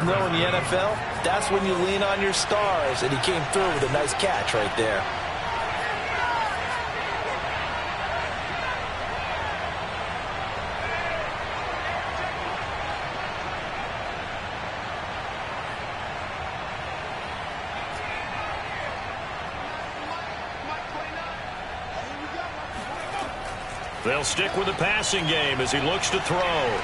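A crowd roars steadily in a large stadium.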